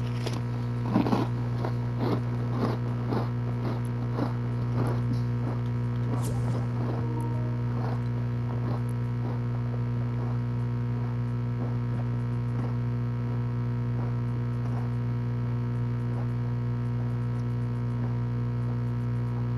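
Soft interface clicks tick repeatedly as a menu list scrolls.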